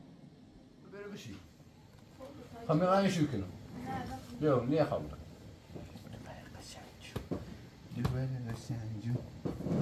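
A young man talks playfully to a small child close by.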